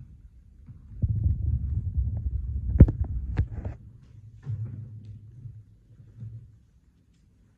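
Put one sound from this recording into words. Footsteps thud across a floor nearby.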